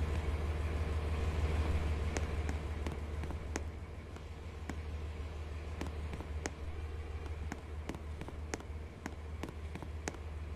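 A train engine hums low and steady.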